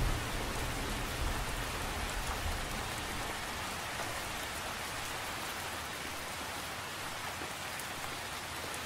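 Rain patters steadily on the surface of a lake outdoors.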